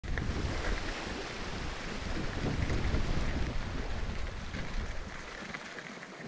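Wind rumbles and buffets outdoors.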